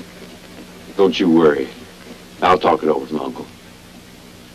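A young man speaks softly close by.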